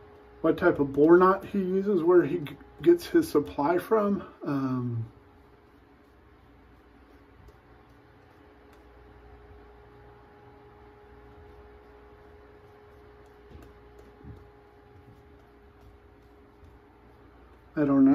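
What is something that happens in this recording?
A shaving brush swishes lather against stubble.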